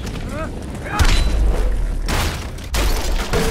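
A heavy blast booms as stone shatters and crumbles.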